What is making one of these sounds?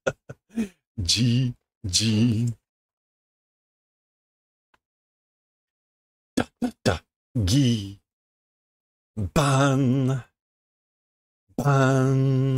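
A middle-aged man speaks with animation through a close microphone, in short bursts with pauses.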